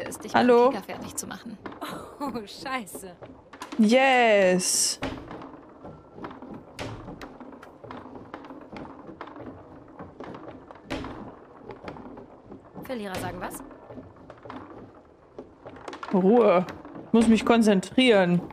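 Table football rods knock and the ball clacks against the figures.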